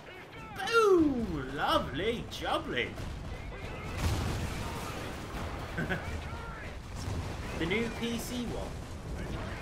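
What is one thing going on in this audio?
A man talks excitedly into a microphone.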